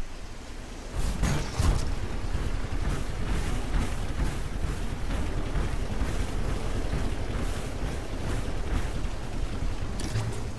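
Heavy mechanical footsteps stomp in a steady rhythm.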